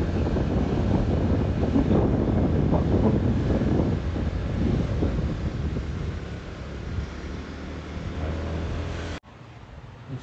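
A motor scooter drones as it rides along a street.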